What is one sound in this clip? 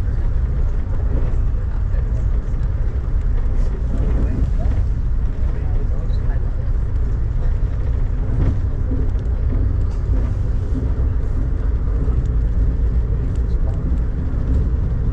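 Rain patters against a window.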